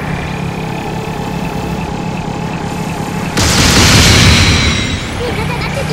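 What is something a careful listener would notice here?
A heavy gun fires with loud blasts.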